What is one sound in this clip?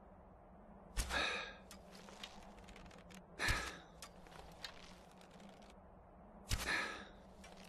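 A bowstring twangs sharply as arrows are loosed, several times.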